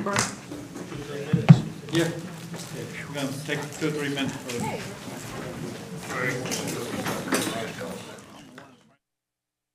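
A small crowd of men and women chatter and murmur in a large echoing room.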